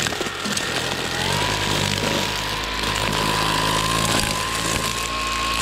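A string trimmer engine whines loudly and steadily up close.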